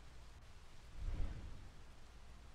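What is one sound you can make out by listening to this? A heavy wooden object thuds.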